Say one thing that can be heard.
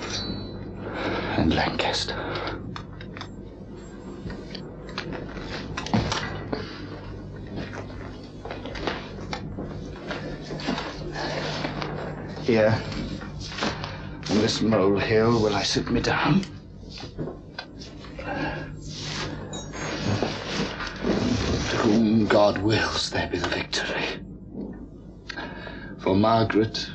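A young man speaks aloud with emotion, close by.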